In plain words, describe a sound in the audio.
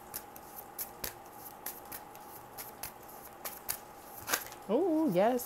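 Playing cards are shuffled with soft quick clicks.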